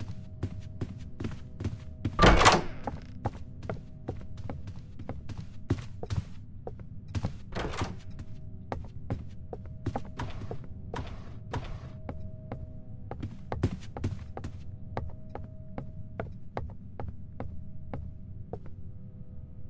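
Footsteps thud quickly and steadily on a wooden floor.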